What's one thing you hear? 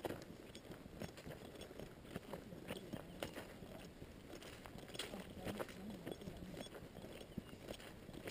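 Footsteps crunch through grass and leaves at a walking pace.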